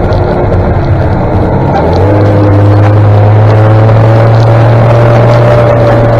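A nearby motor engine drones loudly, its pitch rising and then holding steady.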